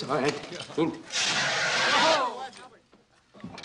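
A fire extinguisher sprays with a loud hiss.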